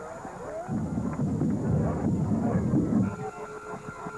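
A crowd cheers and roars outdoors.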